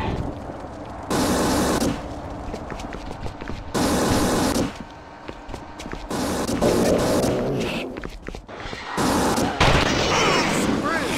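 Flames crackle and burn.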